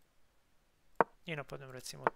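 A chess piece clicks as it is moved.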